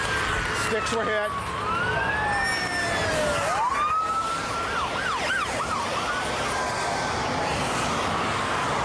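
A police siren wails and yelps close by.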